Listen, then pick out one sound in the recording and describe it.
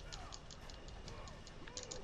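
Blades clash and strike sharply in a fight.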